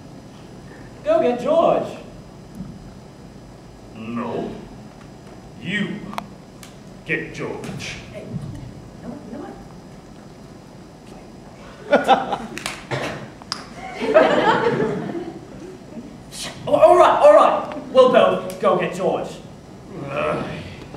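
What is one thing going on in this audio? A second young man speaks in a tense, low voice.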